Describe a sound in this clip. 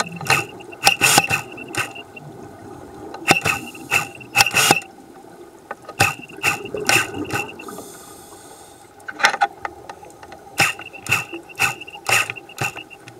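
Bubbles from divers' breathing gear gurgle and rush in bursts underwater.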